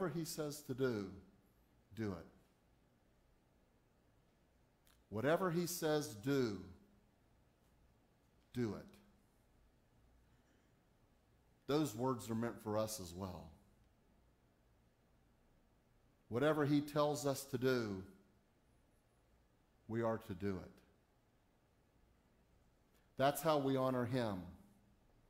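A middle-aged man speaks calmly in short phrases with pauses, heard in a room with a slight echo.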